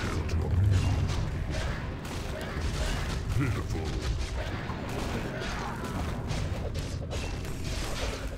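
Game spells and weapons clash and burst during a battle.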